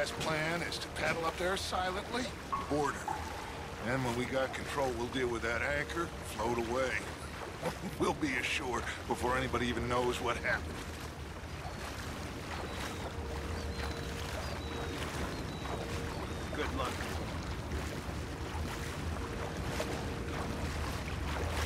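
Paddles dip and splash softly in calm water.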